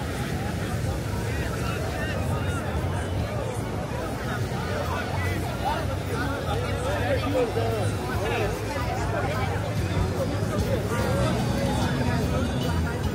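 Many people chatter and call out all around outdoors.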